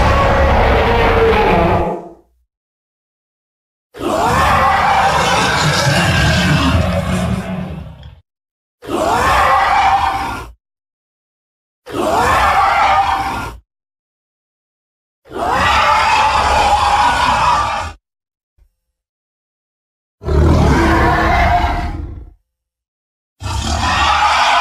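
A huge beast roars in long, deep, rumbling bursts with short silences between them.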